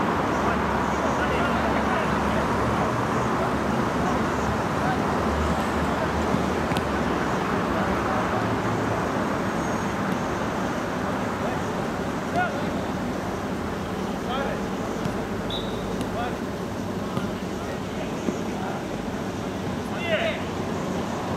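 Spectators murmur and chatter nearby.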